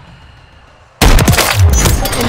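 A rifle fires a single loud, sharp shot.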